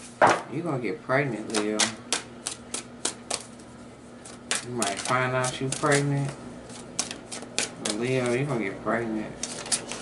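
Playing cards riffle and slap as a deck is shuffled.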